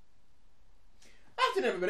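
A young woman cries out suddenly close by.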